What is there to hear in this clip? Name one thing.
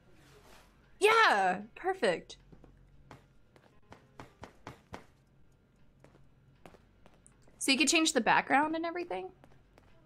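A young woman speaks with animation into a headset microphone, close by.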